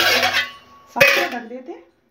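A metal lid clanks down onto a metal pot.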